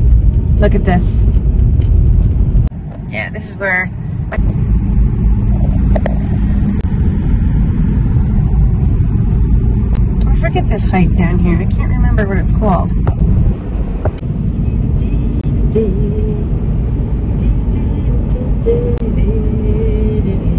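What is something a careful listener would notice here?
A car drives along a road with a steady low rumble of tyres and wind.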